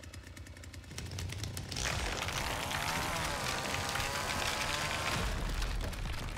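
A chainsaw revs loudly.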